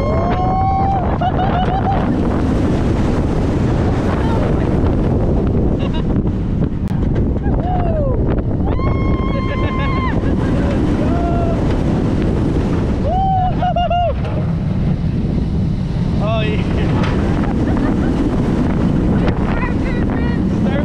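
Wind roars loudly past at speed.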